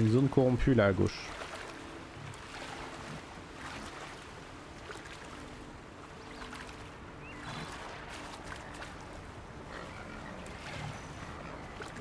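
Water splashes softly as someone wades through it.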